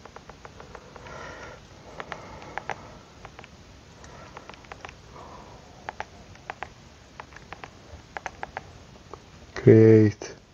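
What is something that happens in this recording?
Fingers tap lightly on a touchscreen in quick, uneven clicks.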